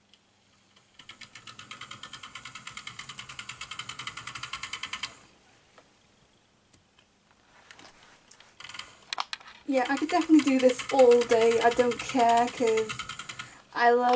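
A model train rattles and clicks quickly along its track.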